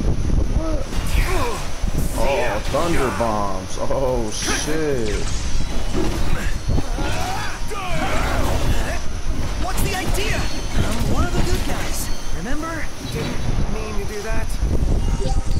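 Magic blasts crackle and burst in a fight.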